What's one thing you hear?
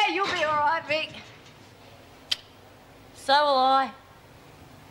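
A young woman speaks in a low, weary voice nearby.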